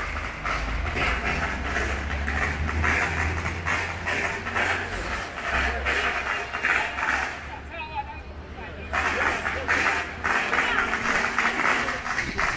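A vehicle engine hums low as it rolls slowly along a street.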